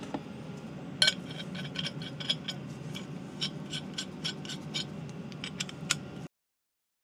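A ratchet wrench clicks sharply against metal.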